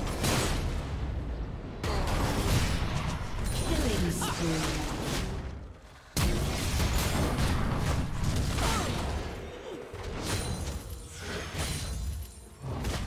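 Fast bursts of game combat effects clash and crackle.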